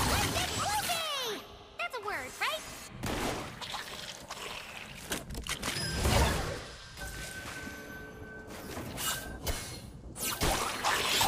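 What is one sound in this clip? Magical spell effects whoosh and zap in quick bursts.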